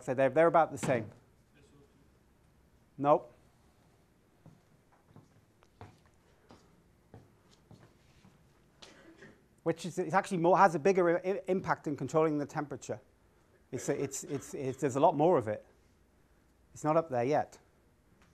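A middle-aged man lectures with animation through a clip-on microphone, pausing now and then.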